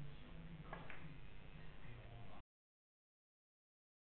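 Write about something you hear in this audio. Billiard balls knock down small wooden pins with a clatter.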